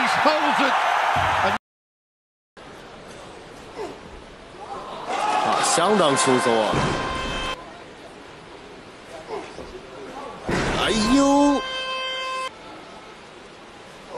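A heavy barbell crashes onto the floor.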